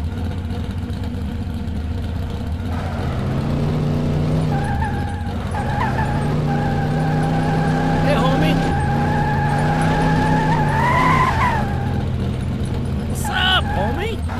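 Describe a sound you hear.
A racing car engine hums and revs.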